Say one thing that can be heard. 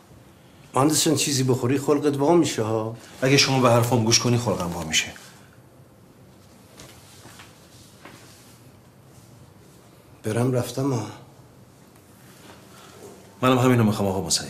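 A middle-aged man speaks sharply and with agitation, close by.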